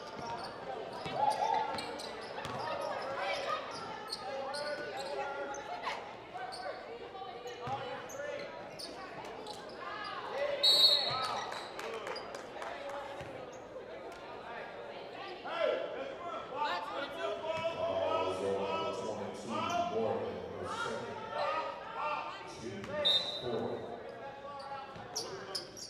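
Spectators chatter and call out in a large echoing hall.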